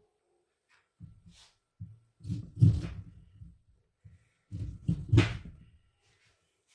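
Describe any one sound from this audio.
A knife thuds through a lemon onto a plastic cutting board.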